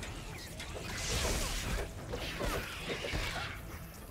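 Explosions boom in a game battle.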